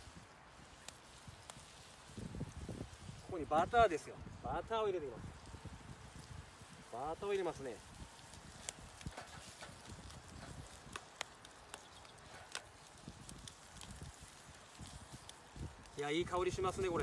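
A wood fire crackles softly.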